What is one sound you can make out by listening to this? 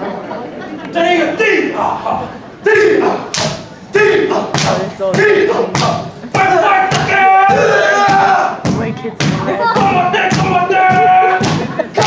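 Young men shout and chant in rhythm.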